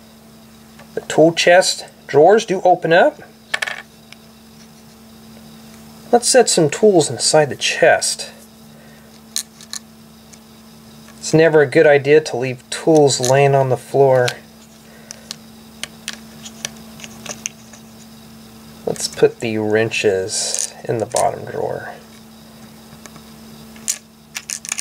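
Small plastic bricks click and snap together.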